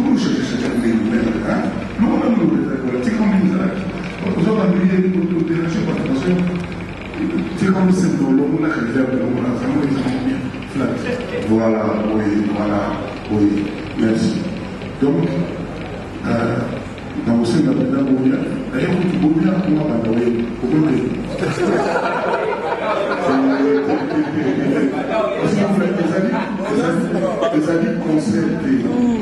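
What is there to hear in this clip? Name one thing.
A band plays music.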